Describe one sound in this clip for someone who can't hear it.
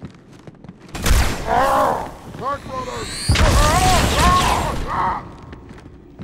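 An energy weapon fires in loud, sizzling blasts.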